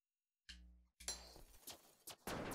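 An electronic zap crackles sharply.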